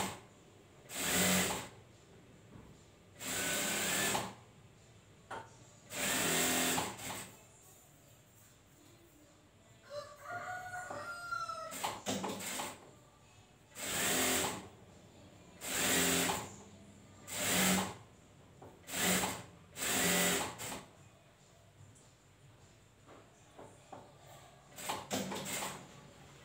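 A sewing machine runs in short, loud bursts and stops in between.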